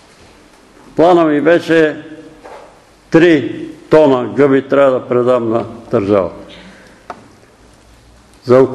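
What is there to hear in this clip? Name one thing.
An elderly man preaches loudly and with emphasis in an echoing hall.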